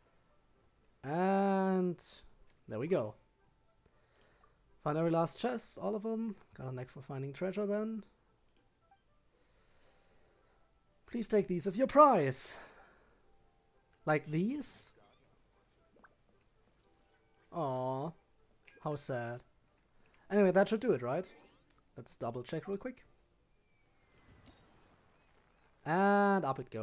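A young man talks with animation close to a microphone, in short bursts.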